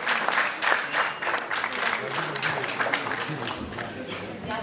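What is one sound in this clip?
An audience claps in a large hall.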